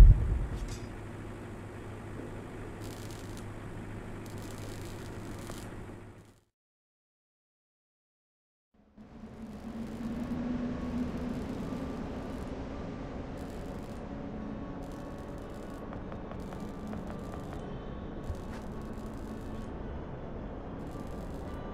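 A low hum drones steadily, cuts out briefly, then returns.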